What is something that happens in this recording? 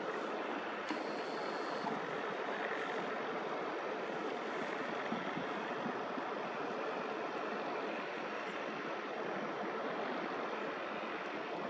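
Construction machinery rumbles steadily in the distance.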